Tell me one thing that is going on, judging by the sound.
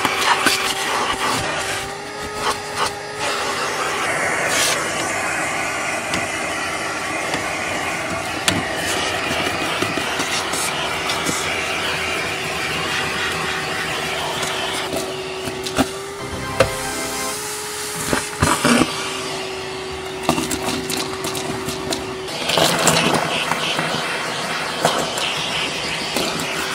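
A vacuum cleaner hums steadily up close.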